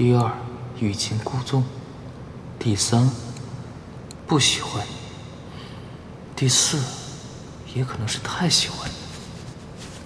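A young man speaks calmly and close by, in short phrases.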